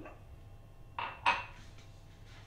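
A glass clinks down on a hard countertop.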